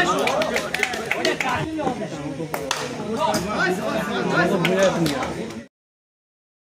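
A crowd of young men shouts and chatters outdoors.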